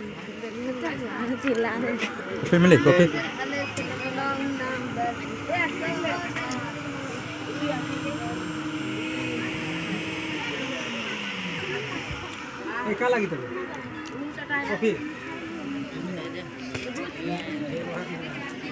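Several young men and boys talk with animation close by.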